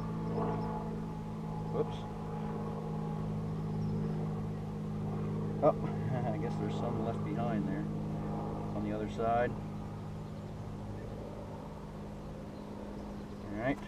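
Bees buzz steadily around a hive.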